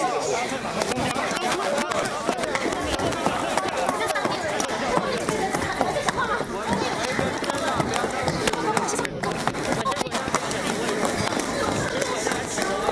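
A crowd of men and women talks over one another loudly, close by.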